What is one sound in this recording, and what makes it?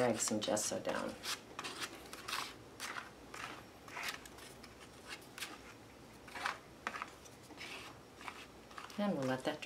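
A card scrapes across paper in quick, short strokes.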